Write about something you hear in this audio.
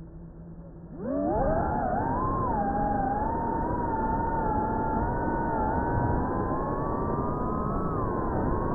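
A small drone's motors whine loudly, rising quickly in pitch and then wavering.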